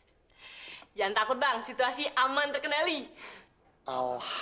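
A young woman speaks brightly and laughs.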